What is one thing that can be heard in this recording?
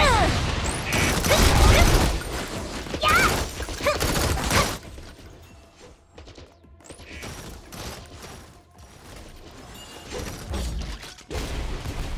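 Game combat effects whoosh and crash in quick bursts.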